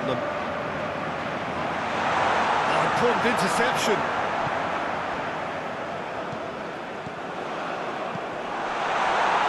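A large crowd roars steadily, swelling louder at times.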